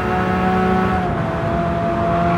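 A gear shift briefly breaks a racing car engine's roar.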